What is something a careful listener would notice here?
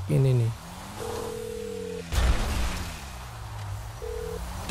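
A phone ringing tone sounds in short bursts.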